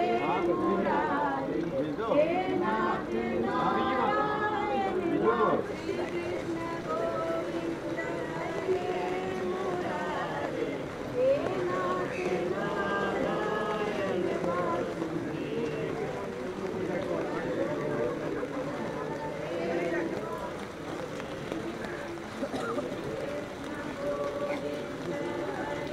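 A crowd of men and women talks in a low, steady murmur close by.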